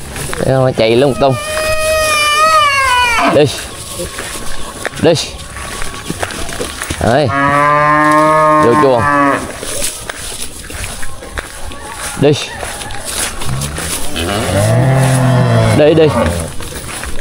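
A calf moos loudly several times.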